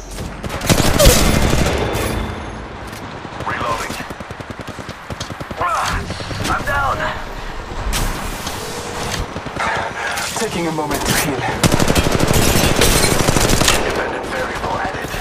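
Rapid gunfire bursts loudly and close.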